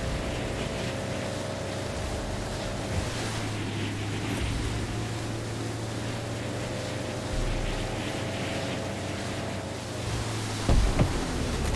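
A motorboat engine hums steadily while cruising across water.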